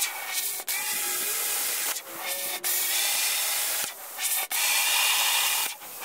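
An electric arc welder crackles and hisses in short bursts.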